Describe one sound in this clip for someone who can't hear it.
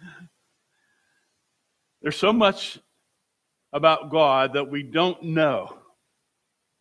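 An elderly man speaks calmly through a microphone, with pauses between phrases.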